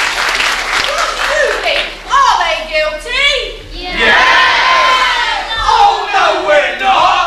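Young actors speak and sing loudly on a stage in an echoing hall.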